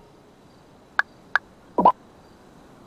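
A phone beeps as its buttons are pressed.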